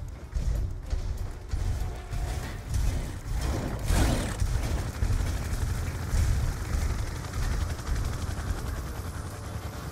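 Heavy footsteps thud steadily on hard ground.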